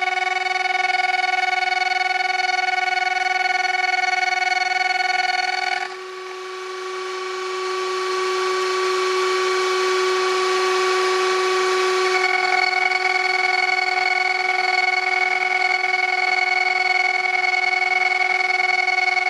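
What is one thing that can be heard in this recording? A lathe motor whines steadily.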